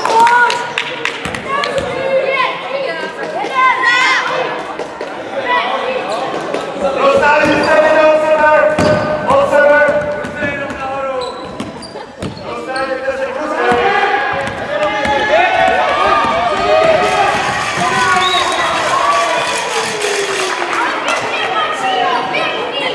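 Children shout and cheer in a large echoing hall.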